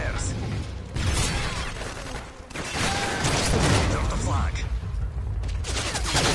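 Automatic gunfire rattles in short bursts.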